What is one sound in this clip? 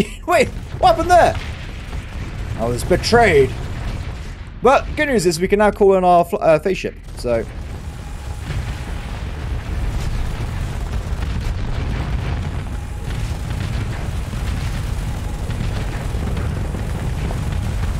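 Explosions rumble and boom deeply.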